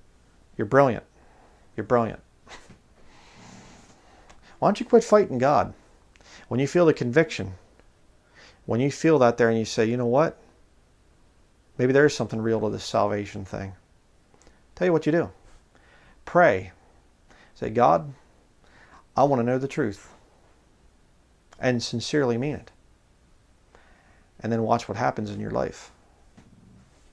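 A man speaks calmly and close into a microphone, in short phrases with pauses.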